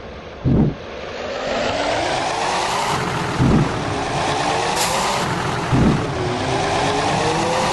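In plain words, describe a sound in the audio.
A bus engine revs and roars as the bus pulls away, rising in pitch.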